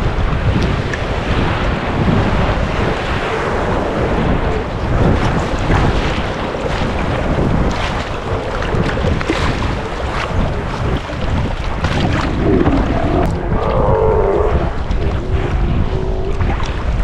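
Waves splash and slosh close by.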